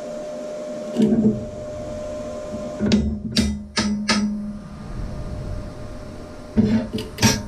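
A steel sheet clanks and scrapes.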